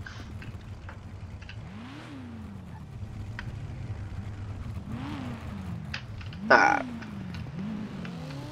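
A car engine hums as a car pulls away slowly.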